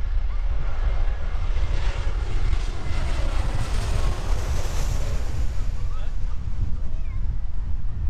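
A jet airliner roars low overhead and fades away.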